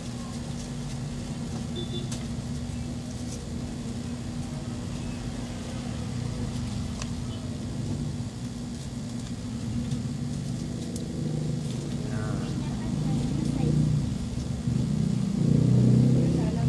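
Hands peel a paper sticker off a plastic tablet.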